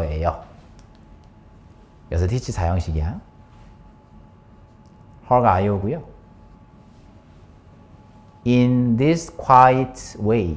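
A young man speaks calmly and clearly close by, in short phrases with pauses.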